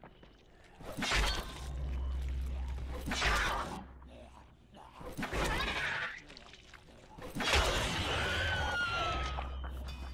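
A blunt weapon hits flesh again and again with wet, heavy thuds.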